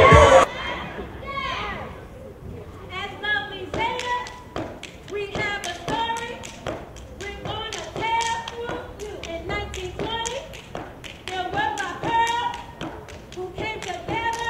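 A young woman chants loudly through a microphone.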